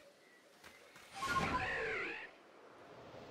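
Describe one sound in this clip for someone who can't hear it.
A large bird lets out a loud, warbling screech.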